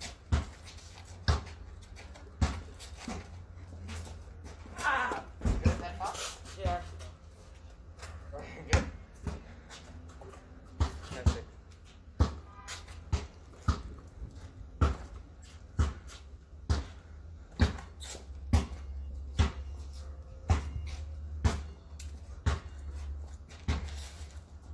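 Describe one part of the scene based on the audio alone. A basketball bounces on pavement.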